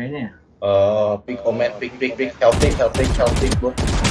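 Rapid gunshots crack in a short burst.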